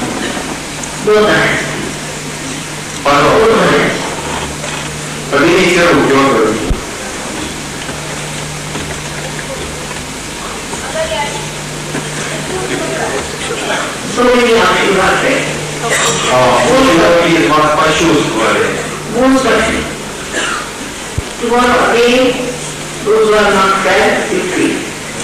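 A woman speaks calmly into a microphone, heard through a loudspeaker in a large room.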